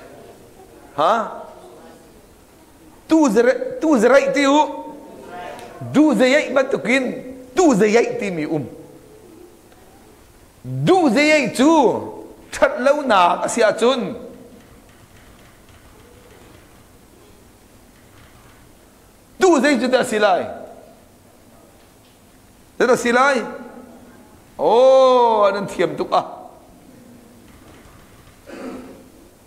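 A middle-aged man speaks calmly into a clip-on microphone, with pauses.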